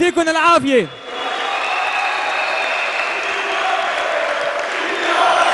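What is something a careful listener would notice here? A large crowd murmurs and cheers.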